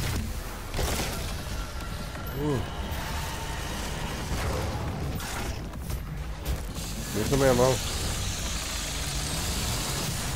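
Flesh tears and splatters in a brutal kill.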